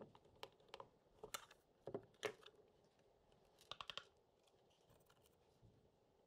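A plastic cover knocks and rattles as it is pulled off and handled.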